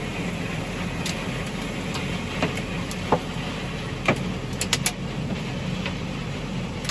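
Cut stalks crackle and rattle against the machines.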